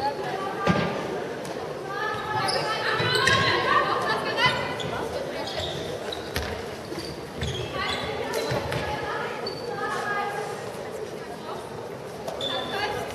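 A handball bounces on a hard floor.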